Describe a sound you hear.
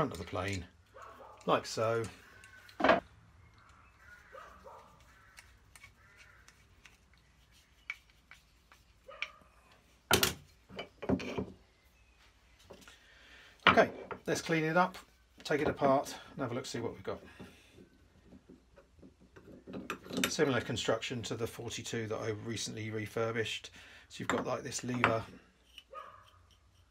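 Small metal parts click and knock against a wooden surface.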